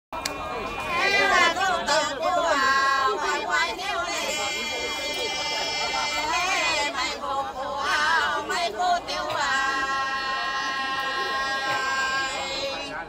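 Middle-aged women sing a folk song together loudly, close by.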